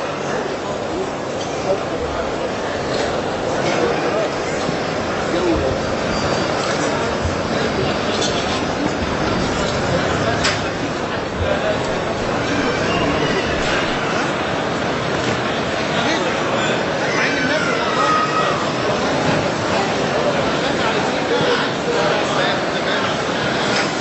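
A large crowd cheers and claps loudly in a big echoing hall.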